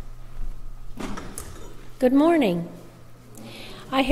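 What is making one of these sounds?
An elderly woman speaks calmly into a microphone in a large echoing room.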